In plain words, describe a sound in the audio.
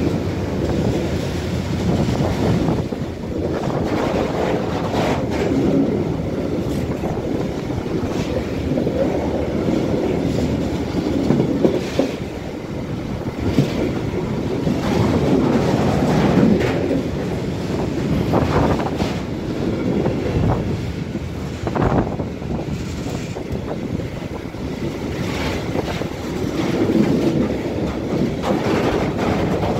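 Steel wheels clatter and squeal over rail joints as freight wagons pass.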